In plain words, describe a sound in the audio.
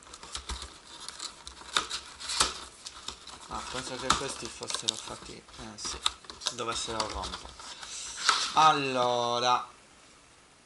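A cardboard box rubs and knocks as hands handle it close by.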